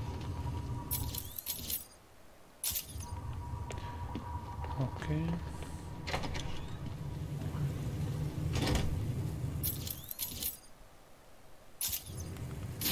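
A game menu chimes as a map opens and closes.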